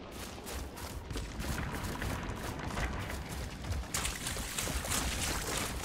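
Water trickles in a shallow stream.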